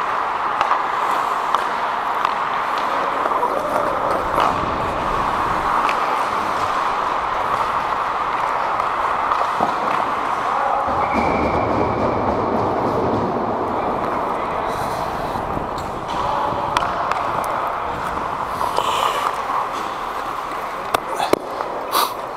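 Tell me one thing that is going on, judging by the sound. Skates scrape and hiss across ice close by.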